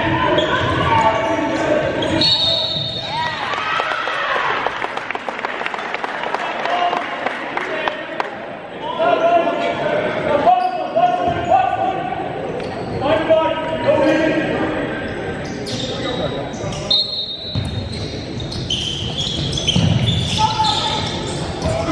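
Sneakers squeak sharply on a wooden court in an echoing gym.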